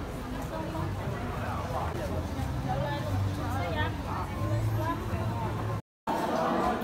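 A crowd chatters in a busy outdoor market.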